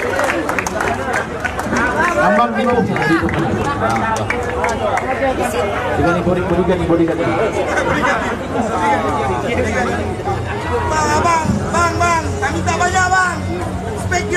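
A crowd of young men shouts and cheers close by.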